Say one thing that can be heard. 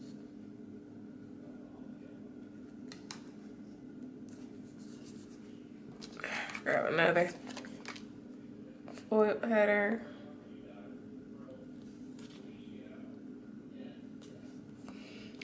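Paper stickers rustle and crinkle softly as fingers press and peel them.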